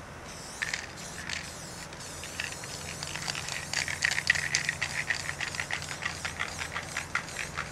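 A spray paint can hisses in short bursts.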